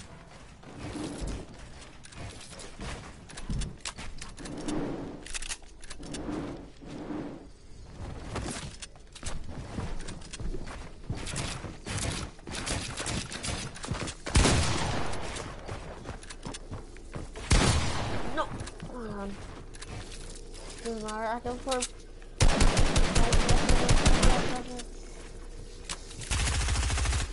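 Quick clattering knocks of building pieces snapping into place sound in rapid bursts.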